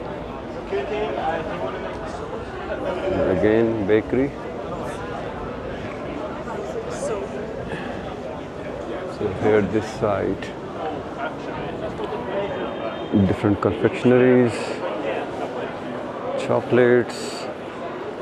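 A crowd of people chatters all around in a busy indoor space.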